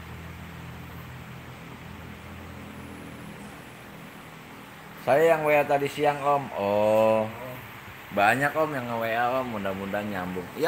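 Computer fans whir with a steady low hum.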